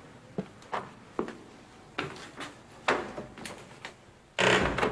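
A door latch clicks and rattles.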